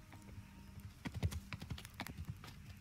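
A horse's hooves clop on a stone path.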